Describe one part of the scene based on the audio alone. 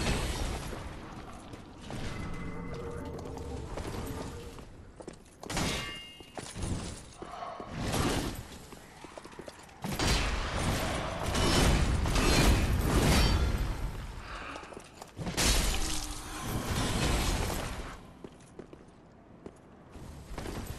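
Footsteps run on stone.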